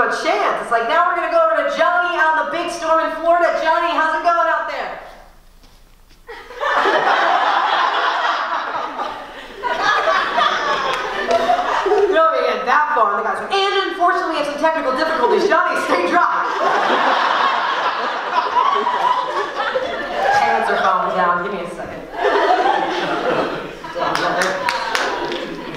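A young woman speaks with animation into a microphone, heard through loudspeakers in a large hall.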